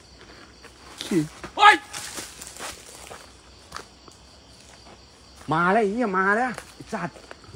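A young man shouts out close by.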